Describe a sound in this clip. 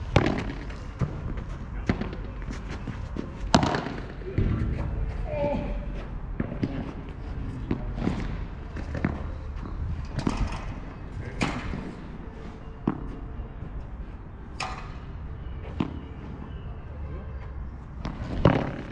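A ball bounces on a court with light thuds.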